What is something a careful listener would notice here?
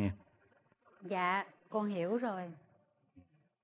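A woman speaks with emotion, close by.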